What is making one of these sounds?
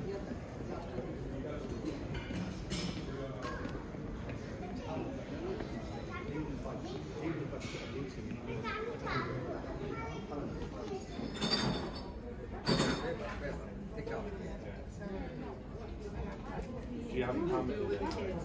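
A murmur of distant voices fills a large indoor space.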